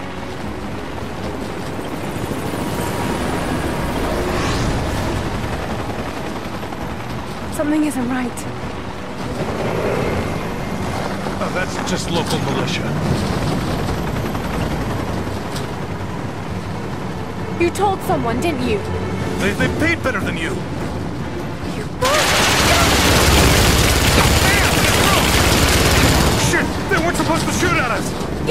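A car engine rumbles steadily as a vehicle drives over rough ground.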